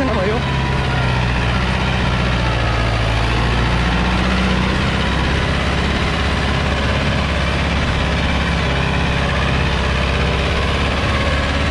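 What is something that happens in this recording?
A diesel tractor engine labours under load.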